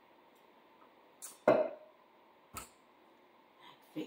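A cup knocks down on a countertop.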